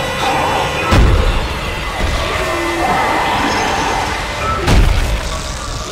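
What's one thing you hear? Heavy boots stomp down with loud thuds.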